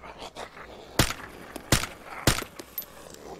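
Sharp rifle shots crack several times close by.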